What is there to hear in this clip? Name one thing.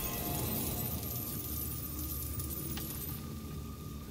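Coins jingle and sparkle with a bright shimmering chime.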